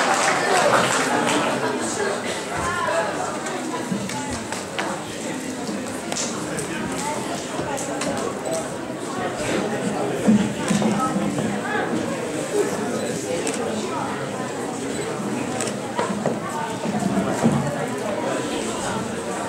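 An elderly man speaks into a microphone in an echoing hall.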